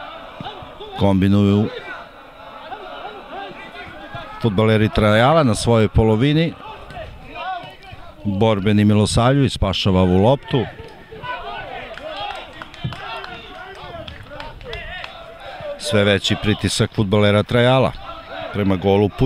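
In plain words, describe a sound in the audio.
Men shout across an outdoor football pitch.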